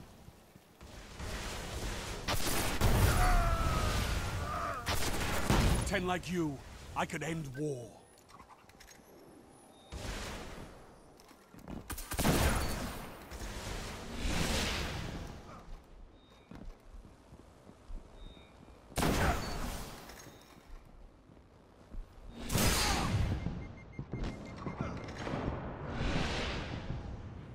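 Gunshots and explosions boom from a video game.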